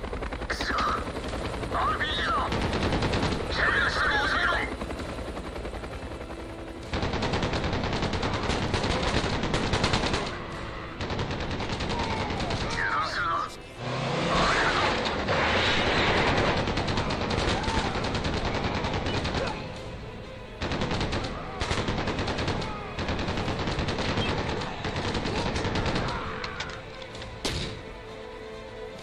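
Rapid automatic gunfire rattles in bursts.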